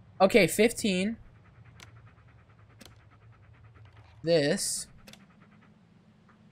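A small fuse clicks into and out of its holder.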